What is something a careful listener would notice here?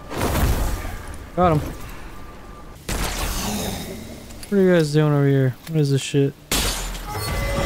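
A revolver fires loud, booming shots.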